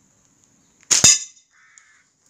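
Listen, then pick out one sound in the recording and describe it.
A slingshot's rubber band snaps sharply once.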